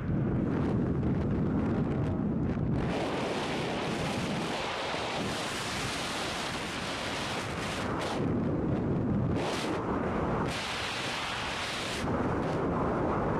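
Strong wind roars and buffets loudly throughout.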